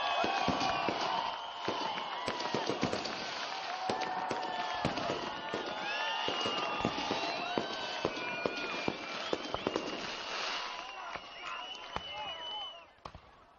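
Fireworks whistle and crackle as they shoot up.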